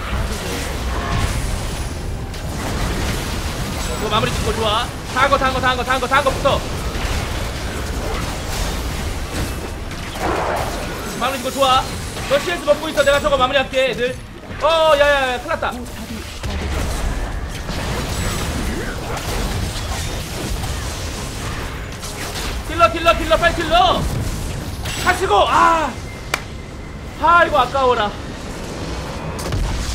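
Spell blasts and clashing hits crackle in a fast video game battle.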